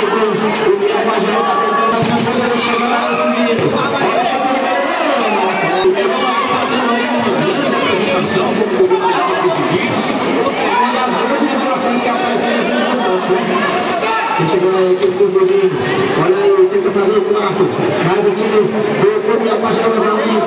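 A large crowd of spectators chatters and cheers loudly in an echoing covered arena.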